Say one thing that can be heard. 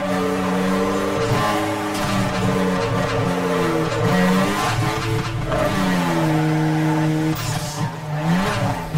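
A racing car engine roars loudly, its pitch rising and dropping as gears change.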